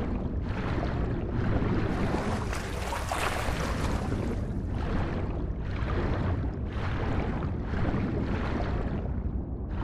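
Water swirls and churns with rhythmic swimming strokes, heard muffled as if underwater.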